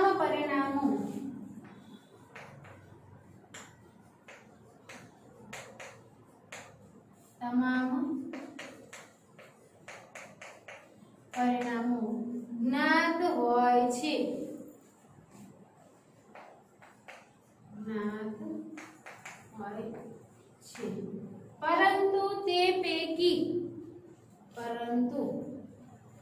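A woman speaks calmly and clearly, as if teaching, close by.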